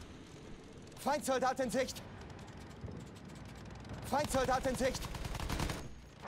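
Twin machine guns fire in rapid bursts.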